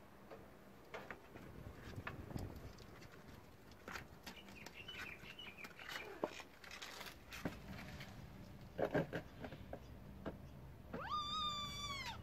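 Kittens shuffle and scratch inside a plastic crate.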